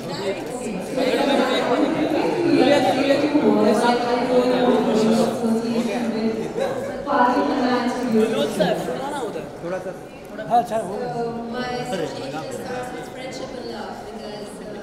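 A young woman speaks with animation into a microphone close by.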